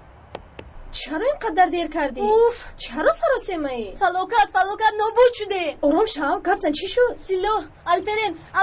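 A teenage girl talks loudly and emotionally close by.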